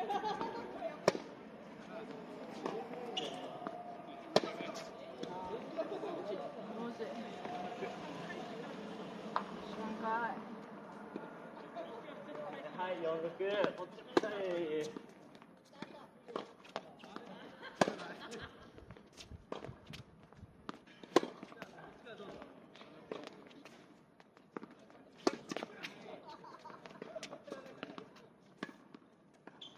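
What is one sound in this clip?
Sneakers scuff and patter on a hard court.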